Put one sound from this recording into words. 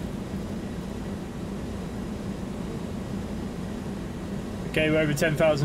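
A steady low engine drone hums.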